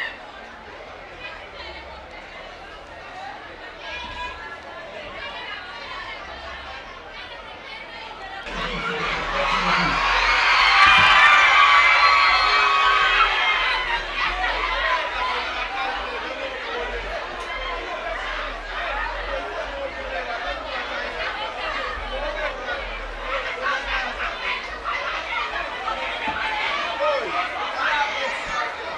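A large crowd cheers and shouts outdoors, swelling loudly.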